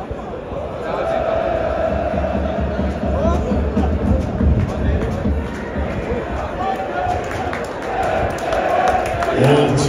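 A large crowd cheers and chants loudly in an open stadium.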